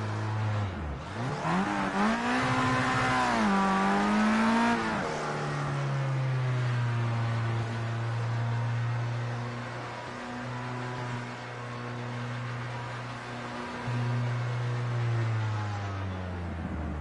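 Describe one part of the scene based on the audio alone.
A racing car engine revs up and down, then drones steadily at speed.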